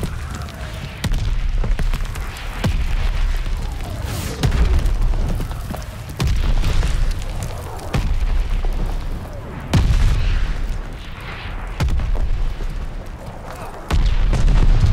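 A double-barrel shotgun fires in booming blasts.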